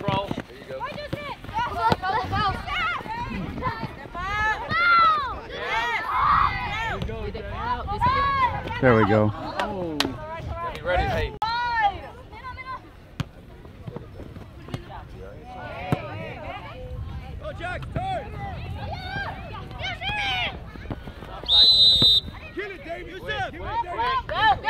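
A soccer ball thuds as it is kicked.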